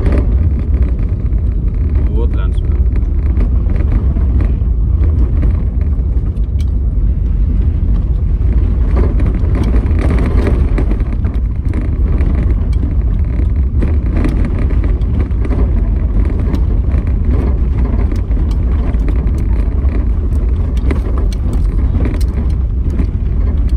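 Tyres crunch on a rough gravel road.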